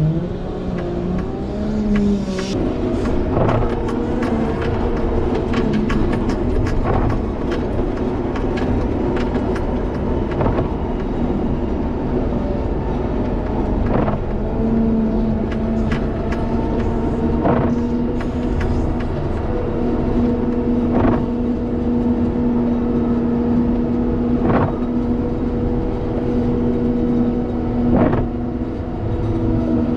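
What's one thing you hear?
A heavy diesel engine rumbles and whines steadily close by.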